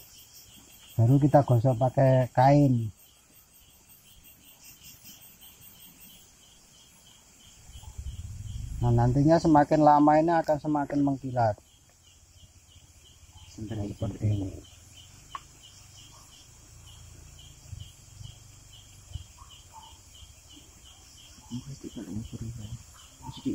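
A man speaks nearby with animation.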